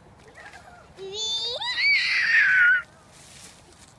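A toddler squeals loudly with delight.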